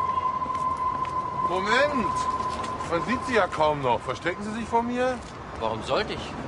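An older man talks firmly outdoors.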